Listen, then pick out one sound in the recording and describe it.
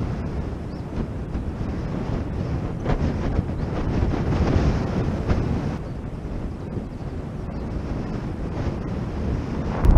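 Strong wind rushes and buffets loudly outdoors.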